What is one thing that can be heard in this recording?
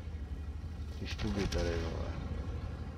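A shell explodes close by with a loud blast.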